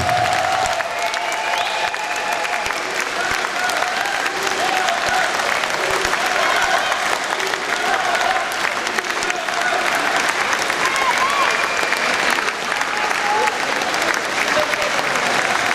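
A crowd cheers.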